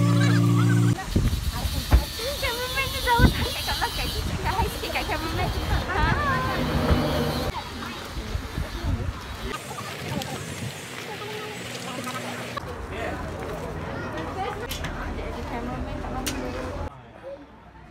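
A crowd of women chatter outdoors nearby.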